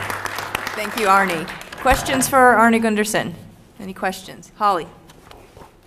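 A woman speaks clearly into a microphone, close and loud.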